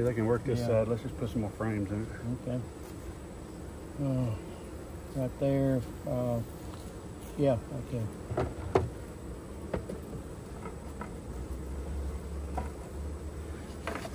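A bee smoker puffs.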